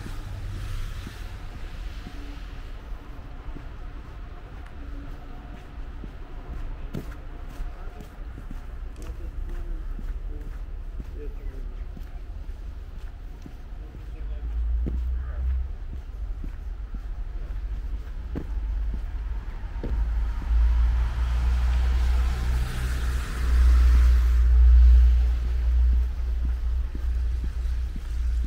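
A street-cleaning vehicle's engine rumbles ahead and grows louder as it nears.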